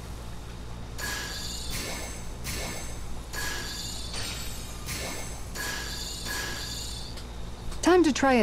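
A fishing reel clicks in quick bursts.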